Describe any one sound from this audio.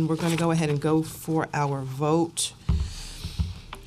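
Papers rustle close by.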